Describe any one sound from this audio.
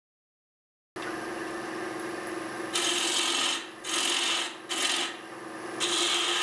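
A wood lathe motor hums steadily.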